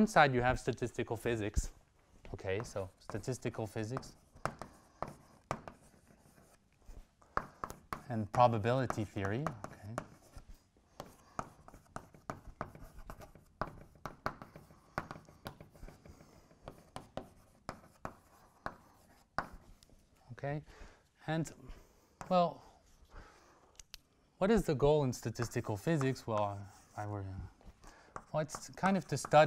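A man speaks calmly and clearly, as in a lecture.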